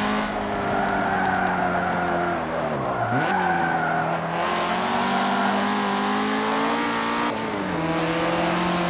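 A car engine roars loudly, dropping in pitch and climbing again as the gears change.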